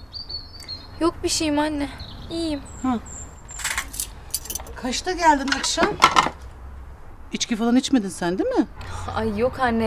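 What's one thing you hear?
A young woman answers wearily, close by.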